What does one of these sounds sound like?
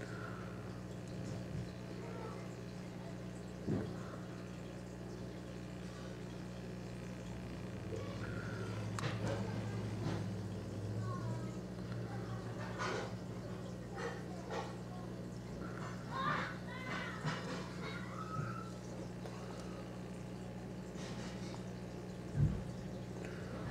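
An aquarium air pump hums steadily.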